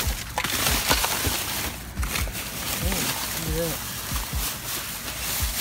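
Plastic bags and paper rustle and crinkle as a hand rummages through them.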